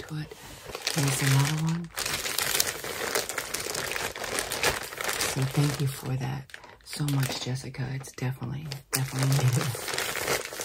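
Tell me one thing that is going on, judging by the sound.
An older woman talks calmly and close by.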